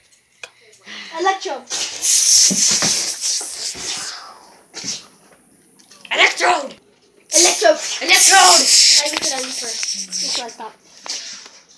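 A boy shouts and laughs loudly close by.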